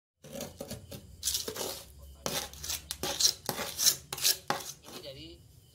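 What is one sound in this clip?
A metal tool scrapes and chisels at crumbling plaster.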